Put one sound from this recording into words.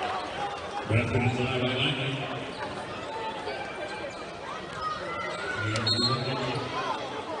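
A crowd murmurs and chatters in a large echoing arena.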